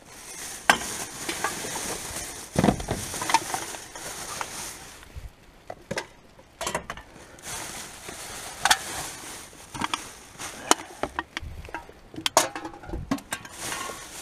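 Cans and bottles clink and knock against each other.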